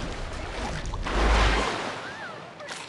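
A large splash of water bursts up as a shark leaps out.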